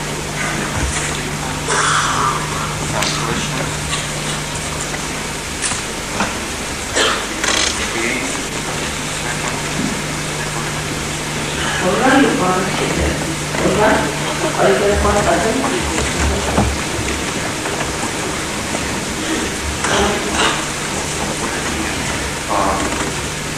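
A woman speaks calmly into a microphone, heard through a loudspeaker in a large room.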